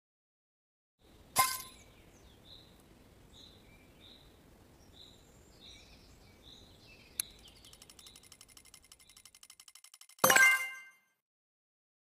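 A video game plays a sharp chime followed by soft, evenly spaced tones and a final bright flourish.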